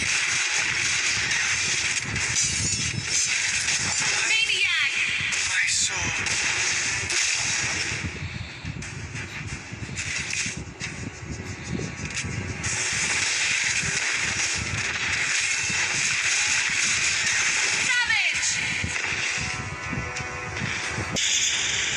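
Game characters clash with swishing blows and magic blasts.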